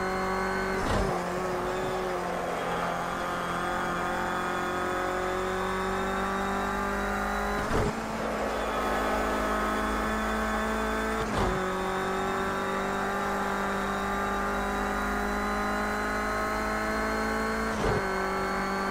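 A gearbox clunks sharply as the gears shift.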